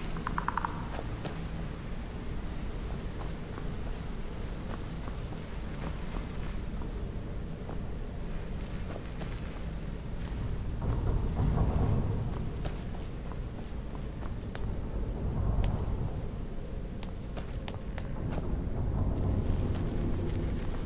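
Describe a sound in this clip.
Footsteps tread on stone floors and stairs.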